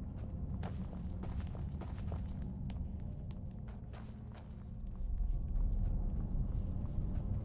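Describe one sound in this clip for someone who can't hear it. Armoured footsteps clank on stone steps.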